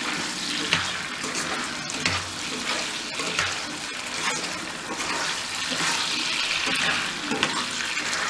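A spoon scrapes and stirs food in a pan.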